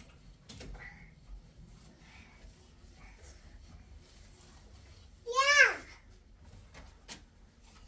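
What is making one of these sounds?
A cloth rubs and squeaks on window glass.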